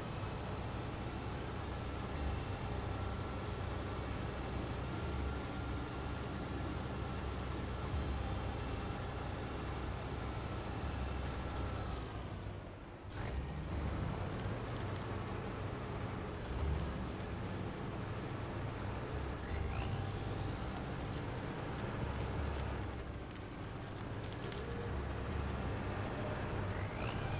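Tyres crunch over snow and rough ground.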